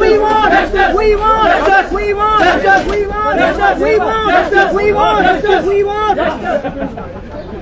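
A crowd of men chants slogans loudly in unison, close by, outdoors.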